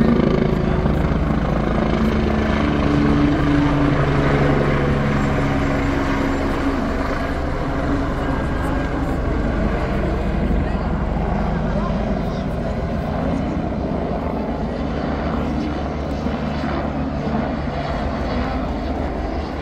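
A helicopter's rotor thumps loudly overhead and slowly fades as it flies away.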